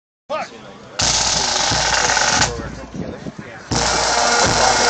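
A pipe band plays bagpipes loudly outdoors.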